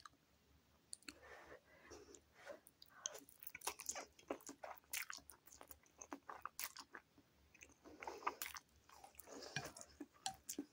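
A woman slurps noodles loudly up close.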